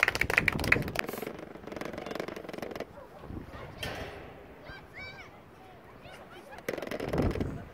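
Young players shout far off across an outdoor pitch.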